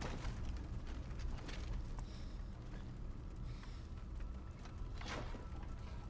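A young man speaks weakly and breathlessly, close by.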